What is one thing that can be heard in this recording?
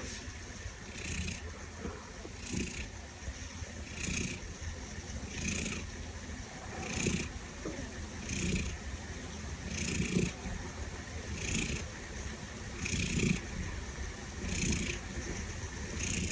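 A cat snores loudly and steadily in its sleep.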